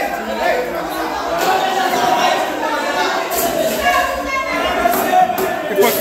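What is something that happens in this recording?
A hammer knocks against a wall.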